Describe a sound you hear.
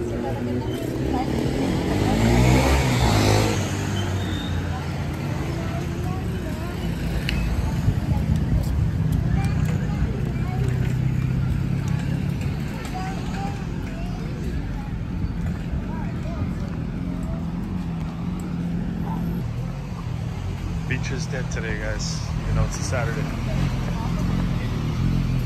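Traffic hums past on a nearby street outdoors.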